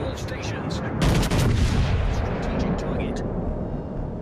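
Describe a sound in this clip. Heavy naval guns fire with deep booming blasts.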